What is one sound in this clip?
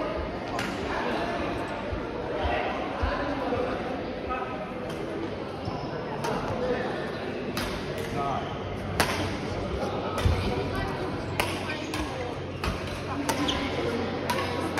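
Sneakers squeak and thud on a hard floor.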